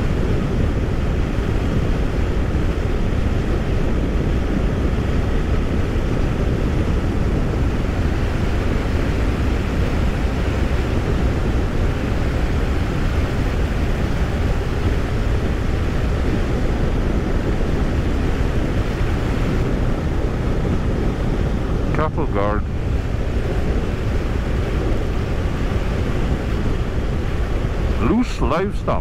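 Wind rumbles loudly and steadily past the microphone.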